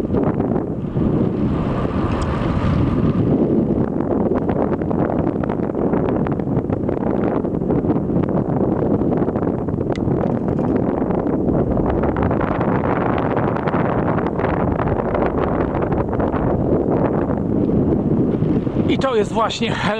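Wind rushes and buffets loudly outdoors throughout.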